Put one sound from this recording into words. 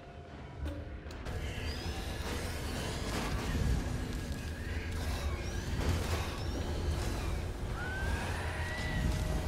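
Spell blasts and weapon clashes ring out in a fight.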